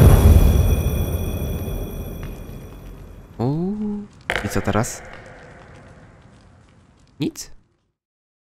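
A loud explosion booms and fades.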